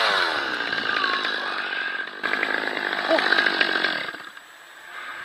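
Branches rustle and scrape close by.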